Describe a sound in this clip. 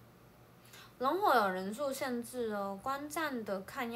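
A young woman speaks close to a phone microphone, with an animated voice.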